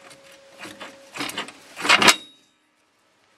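Metal parts clunk and rattle as a steering joint is twisted by hand.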